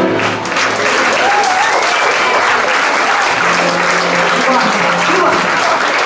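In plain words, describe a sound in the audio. A small band plays lively music live in a room with some echo.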